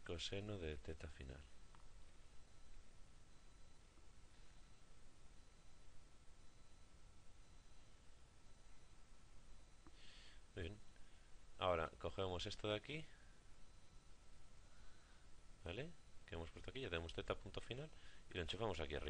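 A young man speaks calmly into a close microphone, pausing at times.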